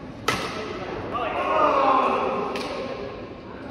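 Men call out and shout in a large echoing hall.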